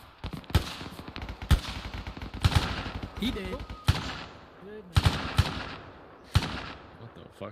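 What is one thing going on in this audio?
Gunshots crack out sharply, one at a time, at uneven intervals.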